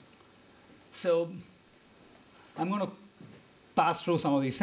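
A man speaks calmly into a microphone, presenting.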